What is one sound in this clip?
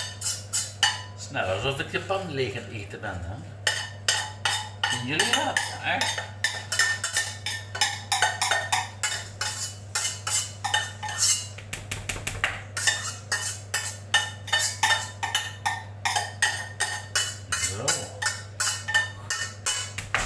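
A man scrubs the inside of a metal pot with a cloth in quick, rhythmic strokes.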